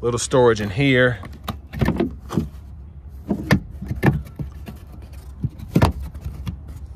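A plastic lid clicks open and shut.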